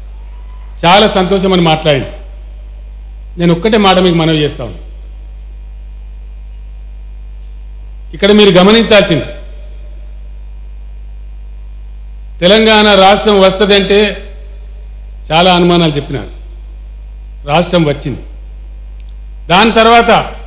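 A man speaks into a microphone in short bursts, with pauses between.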